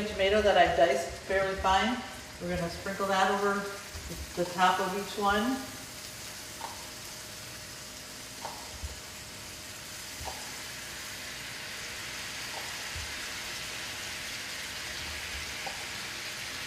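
Food sizzles in a frying pan.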